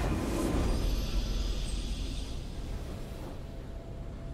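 A triumphant game fanfare blares and quickly fades.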